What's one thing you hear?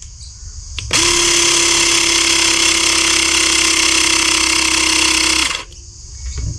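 A toy blaster plays a loud, steady electronic sound effect.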